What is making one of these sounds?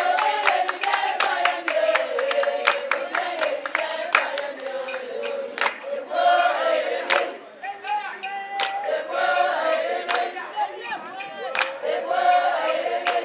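Women clap their hands in rhythm.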